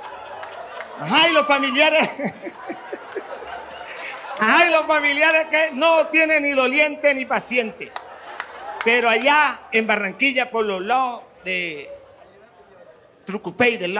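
A man speaks animatedly through a microphone to a crowd.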